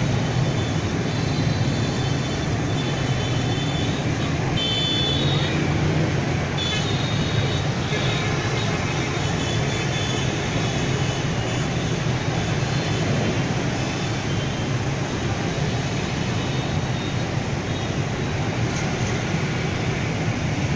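Heavy traffic streams along a busy road, with motorbike engines droning steadily.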